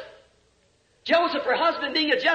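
A man preaches forcefully through a microphone, echoing in a large hall.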